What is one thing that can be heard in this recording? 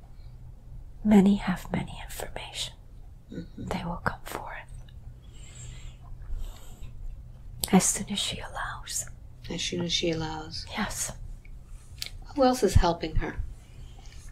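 An elderly woman speaks softly and wearily, close by.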